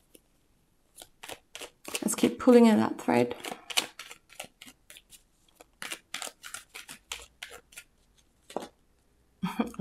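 Cards flick and riffle as they are shuffled.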